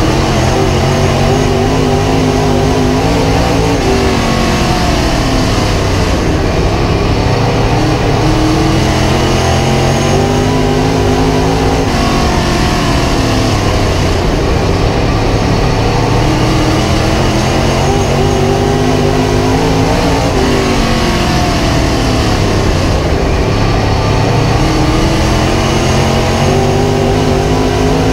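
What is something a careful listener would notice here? A race car engine roars loudly up close, rising and falling in pitch as it speeds up and slows through the turns.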